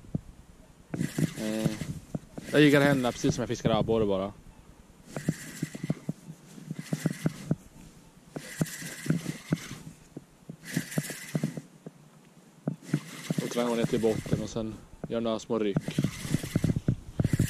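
A fishing reel whirs in short bursts as its handle is cranked.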